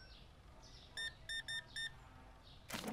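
A checkout scanner beeps several times in quick succession.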